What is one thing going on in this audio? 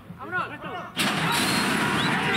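A metal starting gate springs open with a loud clang.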